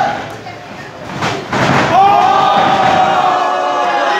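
A body slams onto a wrestling ring mat with a loud thud.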